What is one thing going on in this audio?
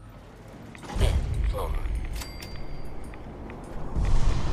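An elevator door slides open.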